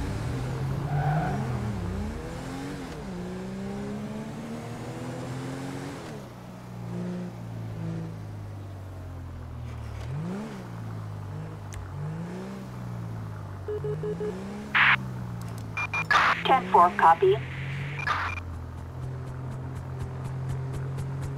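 A police car engine hums and revs as it drives.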